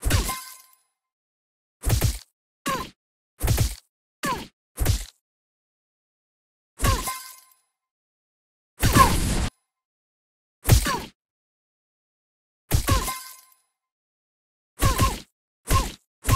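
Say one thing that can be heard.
Cartoon punches land with short, heavy thuds, again and again.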